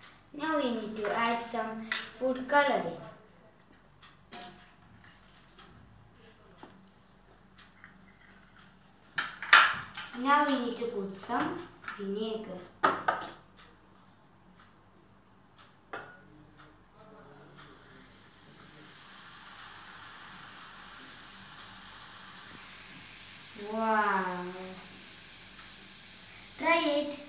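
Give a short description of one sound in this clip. A young boy talks cheerfully close by.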